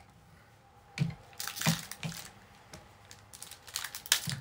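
A foil card pack crinkles as it is handled.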